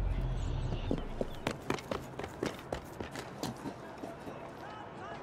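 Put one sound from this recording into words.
Footsteps run across a slate roof.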